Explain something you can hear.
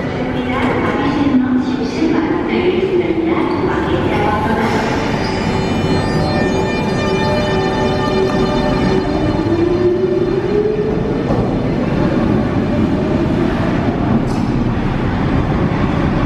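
A train's wheels rumble on the rails and fade into a tunnel.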